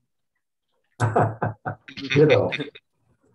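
An older man laughs over an online call.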